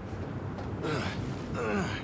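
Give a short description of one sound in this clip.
Hands grab and scrape onto a metal ledge.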